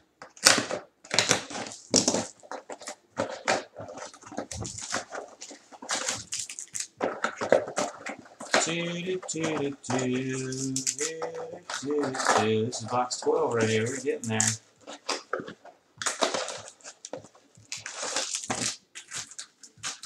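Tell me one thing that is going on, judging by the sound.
Foil card packs crinkle and rustle as they are handled.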